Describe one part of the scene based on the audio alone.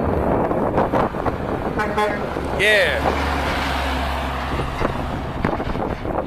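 A heavy truck roars past close by with a deep engine rumble.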